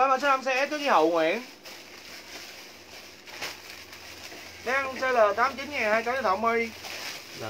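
Plastic wrapping rustles in a woman's hands.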